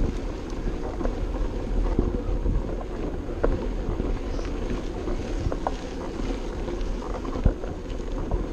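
Bicycle tyres crunch and rattle over a bumpy dirt track.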